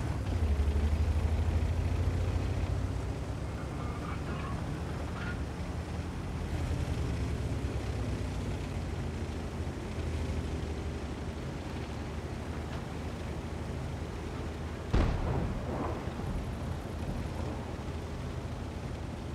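A tank engine rumbles low and steady as the tank drives along.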